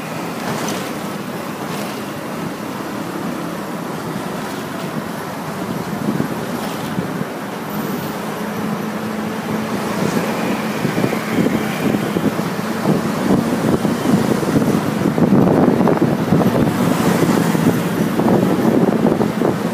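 Motorbikes buzz by.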